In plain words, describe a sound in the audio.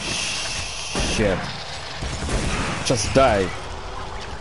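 A shotgun fires with a booming blast.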